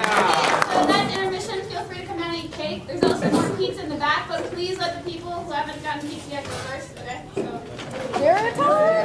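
A young woman speaks on stage, heard from a distance in an echoing hall.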